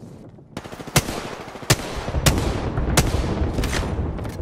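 A rifle fires single sharp shots, one every second or so.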